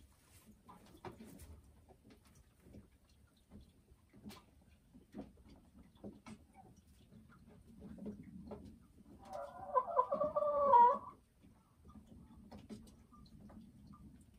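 A hen murmurs with soft, low clucks.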